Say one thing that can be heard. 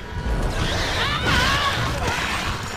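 A creature shrieks shrilly.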